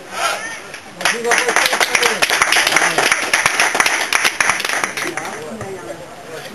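A crowd of spectators claps outdoors.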